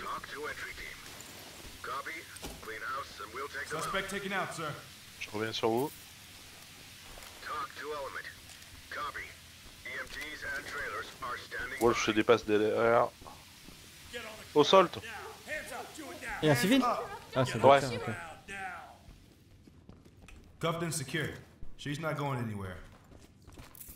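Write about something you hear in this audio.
Men talk in short, clipped phrases over a radio.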